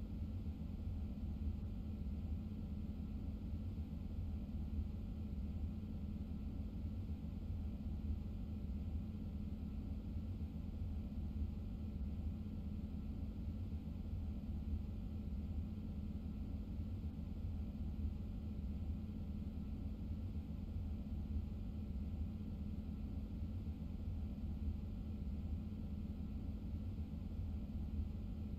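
A train's motor hums with a steady low rumble.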